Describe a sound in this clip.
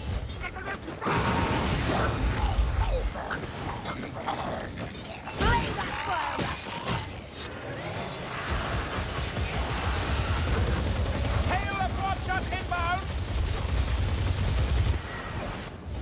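Flames roar and whoosh from a burning staff.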